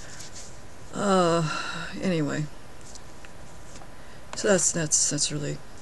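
A woman speaks close to a microphone, calmly, in short phrases.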